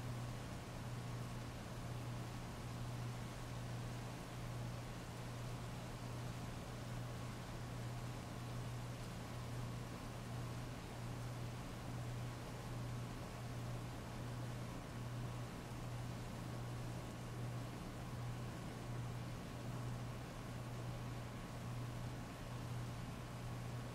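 Heavy rain pours steadily and splashes on wet pavement.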